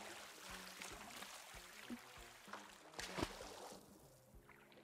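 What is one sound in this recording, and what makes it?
Water splashes softly as a swimmer paddles.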